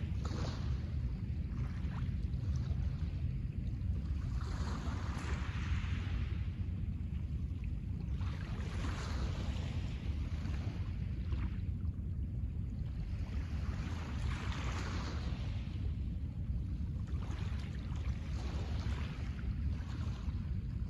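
Small waves wash gently onto a pebble beach in regular surges.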